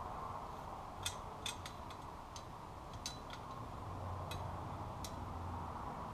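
Metal parts clink lightly as they are handled.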